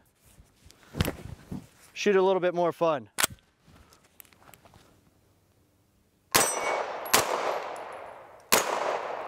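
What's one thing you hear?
A gun fires loud single shots that echo outdoors.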